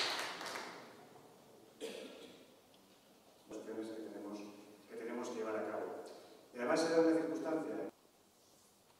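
A man speaks steadily into a microphone in a large hall.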